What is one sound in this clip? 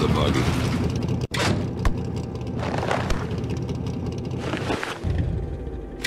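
A buggy engine idles with a low rumble.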